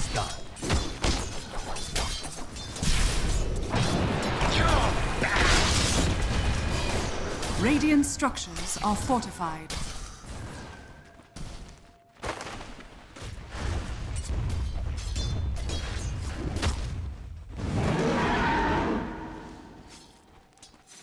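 Fantasy battle sound effects crash and whoosh with spells and blows.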